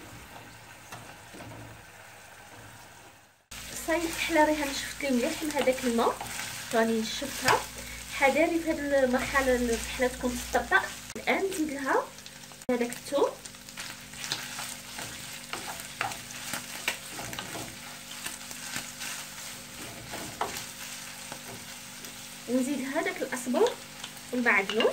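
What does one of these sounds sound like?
Meat sizzles in a hot pan.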